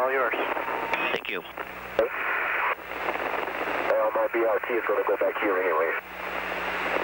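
A man speaks over a crackling radio link.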